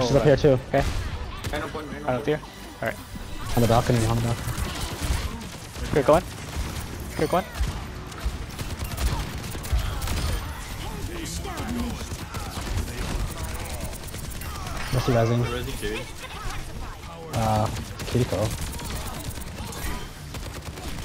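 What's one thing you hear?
A rapid-fire gun shoots in bursts.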